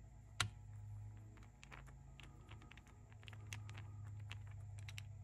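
A small screwdriver clicks and scrapes against metal parts close by.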